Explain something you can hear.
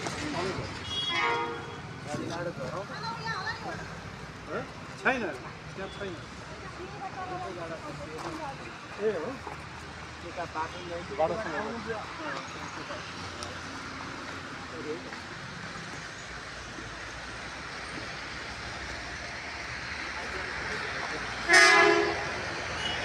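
A vehicle horn honks nearby.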